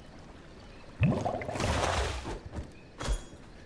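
A magic spell whooshes and crackles as it strikes.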